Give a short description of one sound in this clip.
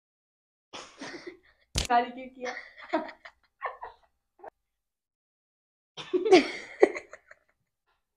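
A boy and a teenage girl laugh loudly.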